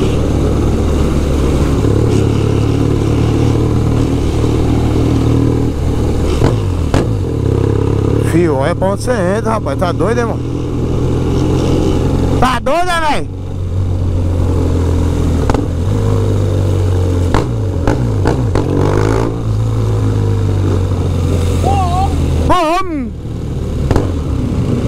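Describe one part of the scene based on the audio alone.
A motorcycle engine hums steadily up close as it rides along.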